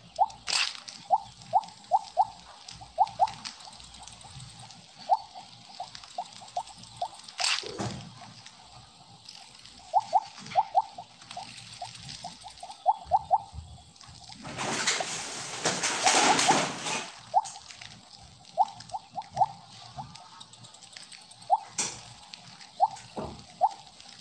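Short, bright game blips sound in quick bursts as a snake eats pellets.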